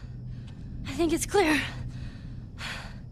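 A young girl speaks quietly and shakily.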